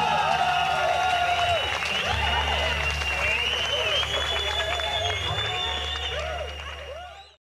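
An electric guitar plays loudly through amplifiers.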